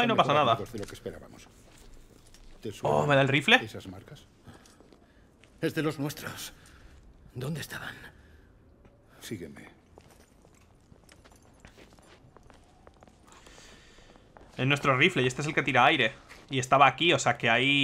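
A man speaks in a low, serious voice close by.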